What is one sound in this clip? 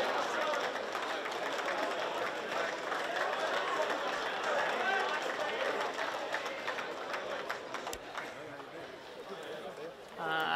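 A group of young people cheers and claps outdoors.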